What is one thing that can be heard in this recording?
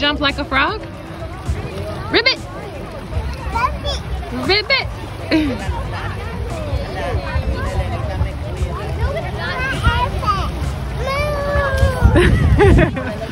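A young child splashes in shallow water.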